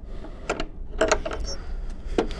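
A metal gate latch clicks and rattles.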